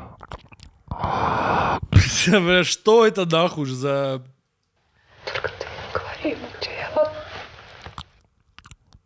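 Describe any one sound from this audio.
A young man speaks with animation into a close microphone.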